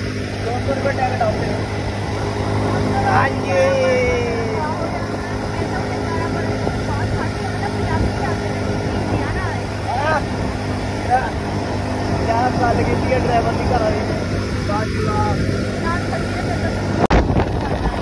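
A young man sings loudly outdoors in the wind.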